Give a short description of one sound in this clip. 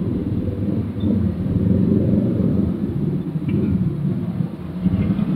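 A car engine idles with a low drone from inside the car.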